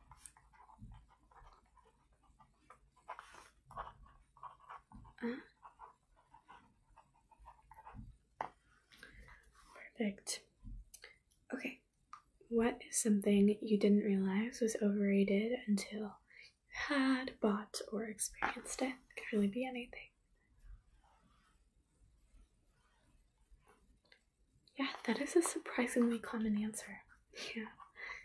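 A young woman sings softly close to the microphone.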